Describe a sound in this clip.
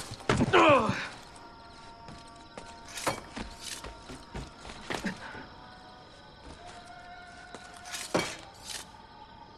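Footsteps thud and scrape on roof tiles.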